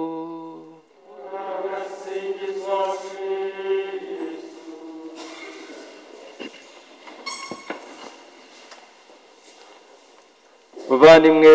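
A congregation sings together softly in an echoing hall.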